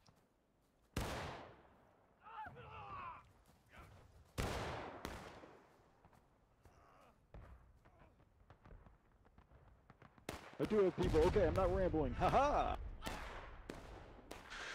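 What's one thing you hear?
Musket shots crack loudly nearby, echoing across open ground.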